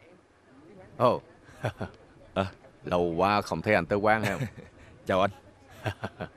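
An elderly man talks and laughs heartily, close by.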